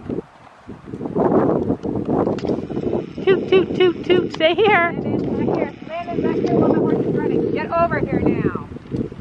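A horse's hooves thud on grass at a canter.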